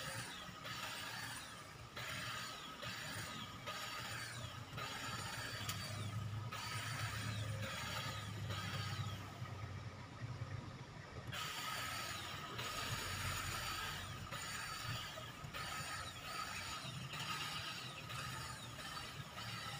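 An electric hedge trimmer buzzes as it cuts through a hedge.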